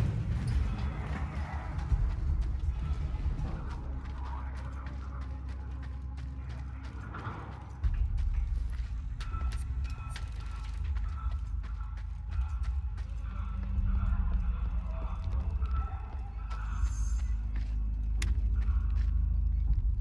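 Footsteps thud on hard ground.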